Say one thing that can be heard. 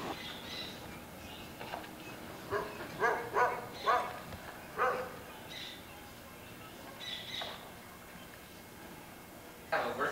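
A broom scrapes and sweeps over dusty ground.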